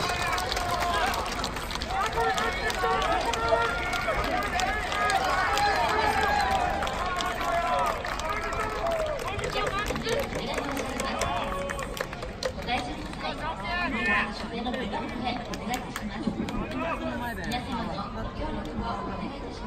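A crowd of young men shouts and cheers outdoors in a large stadium.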